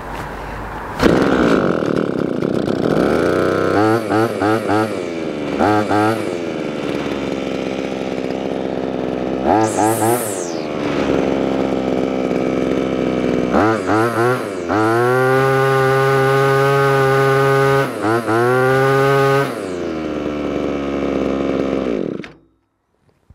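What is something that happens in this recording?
A two-stroke string trimmer engine idles.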